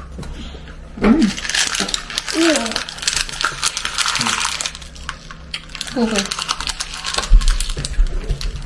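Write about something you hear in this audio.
Crackers crunch loudly as people chew close by.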